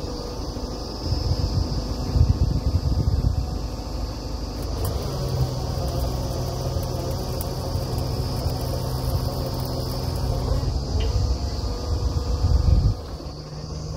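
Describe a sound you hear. A drill rod grinds and rumbles into the ground.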